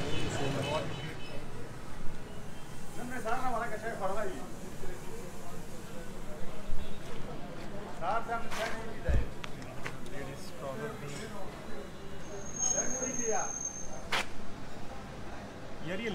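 A man talks nearby in a relaxed voice.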